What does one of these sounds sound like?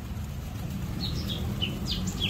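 Pigeons flap their wings as they take off.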